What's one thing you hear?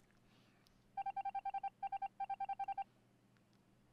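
Quick electronic beeps tick out in short bursts as a game spells out a message.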